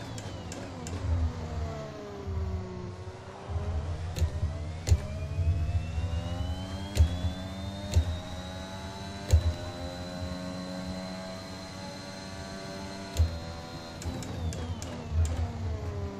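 Gear changes click sharply as the engine shifts.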